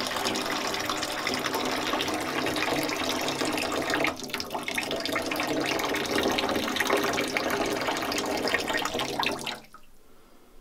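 Water pours and splashes loudly into a sink.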